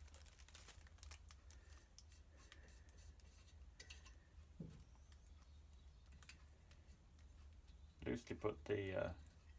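Small metal engine parts click and clink as they are handled.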